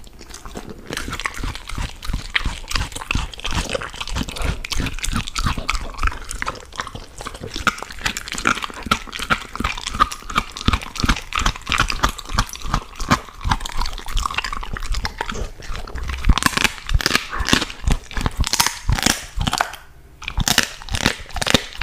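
A dog crunches and chews on food close up.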